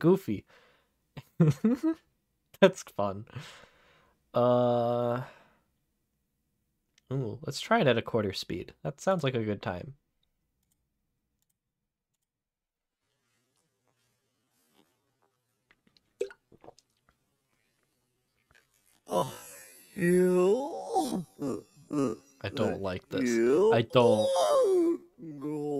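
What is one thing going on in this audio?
A young man talks and laughs with animation close to a microphone.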